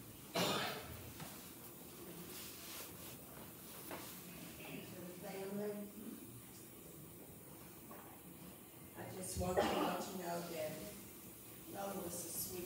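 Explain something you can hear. A woman speaks into a microphone over a loudspeaker, in a large echoing room.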